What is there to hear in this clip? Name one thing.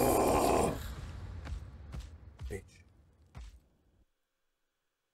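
Loud game sound effects rumble and boom, then fade to silence.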